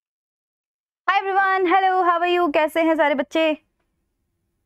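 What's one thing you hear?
A young woman speaks briefly and with animation, close to a microphone.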